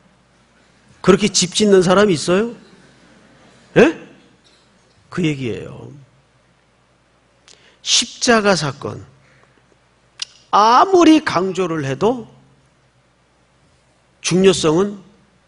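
A middle-aged man speaks with emphasis through a microphone, pausing between phrases, in a slightly echoing hall.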